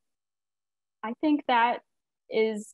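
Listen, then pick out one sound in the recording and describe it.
A young woman speaks brightly over an online call.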